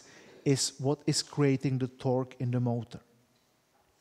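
A middle-aged man lectures calmly through a headset microphone in an echoing hall.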